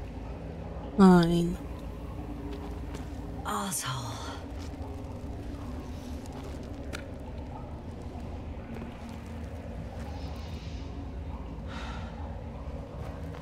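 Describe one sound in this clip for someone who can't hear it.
Gloved hands scrape and grip on rock.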